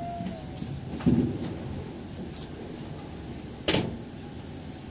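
Train wheels clunk now and then over rail joints.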